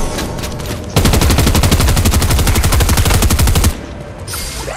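Rapid game sound effects rattle loudly in quick bursts.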